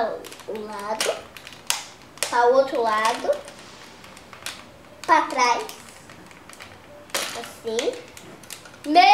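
A young boy talks playfully close by.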